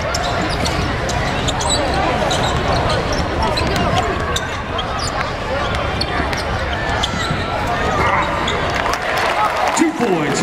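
A crowd cheers and chatters in a large echoing arena.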